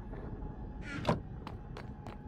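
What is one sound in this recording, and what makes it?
A wooden chest thumps shut.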